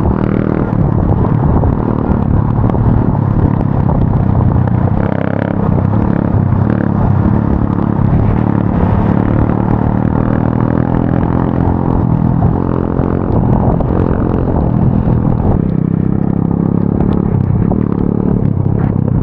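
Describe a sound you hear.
An electric motor whines as a bike speeds along.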